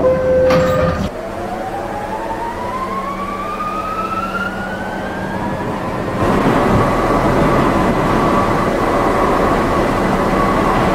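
A subway train's electric motor whines, rising in pitch as the train speeds up.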